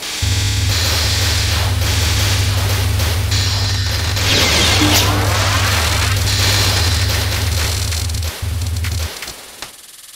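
Rapid game shots fire with a steady electronic chatter.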